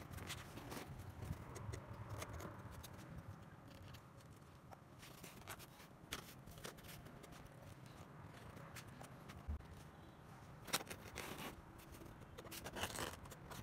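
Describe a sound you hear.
Cardboard is folded and creases with a crackle.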